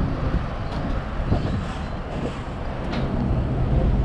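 A car drives slowly across in front, close by.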